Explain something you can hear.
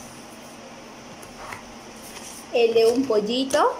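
Paper rustles as sheets are handled.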